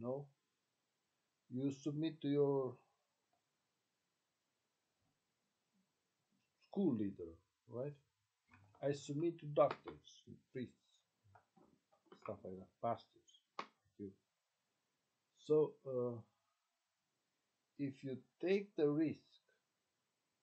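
A man speaks calmly close to a microphone, in short bursts with pauses.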